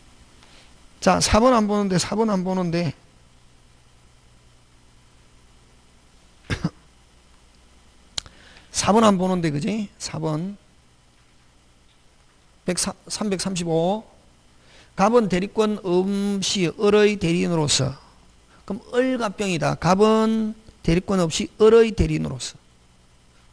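A middle-aged man speaks into a handheld microphone in bursts, with pauses between them.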